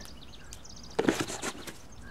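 A hand knocks sharply against a wooden object.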